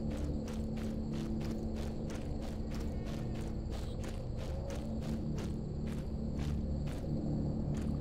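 Footsteps crunch steadily on dry ground.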